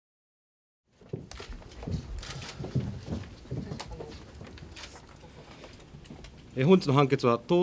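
Paper rustles and chairs shuffle.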